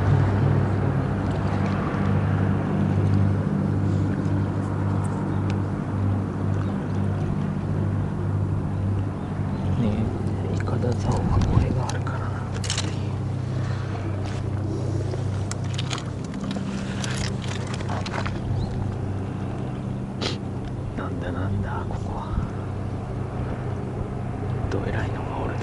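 Water laps gently against a stone wall.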